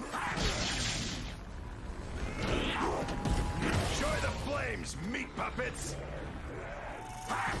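Monsters growl and snarl close by.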